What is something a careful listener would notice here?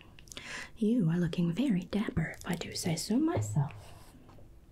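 A woman speaks softly and closely into a microphone.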